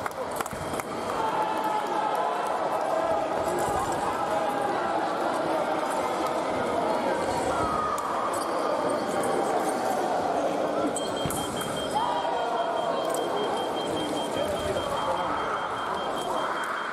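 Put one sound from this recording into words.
A crowd of people talks and murmurs in a large echoing hall.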